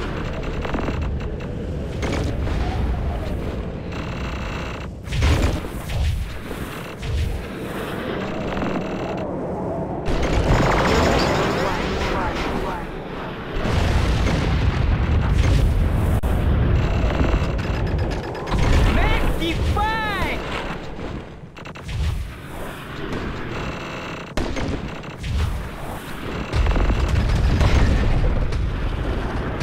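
A snowboard carves and scrapes across snow.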